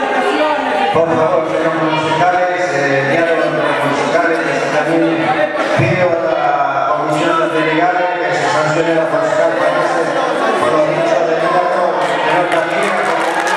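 A man speaks into a microphone in a low, steady voice.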